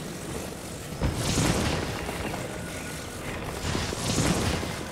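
A shimmering magical whoosh swells and fades.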